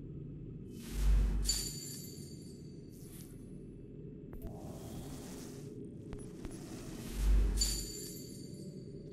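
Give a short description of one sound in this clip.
A bright chime rings as an item is bought.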